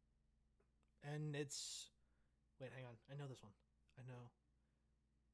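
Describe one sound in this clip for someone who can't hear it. A man speaks with animation over an online call.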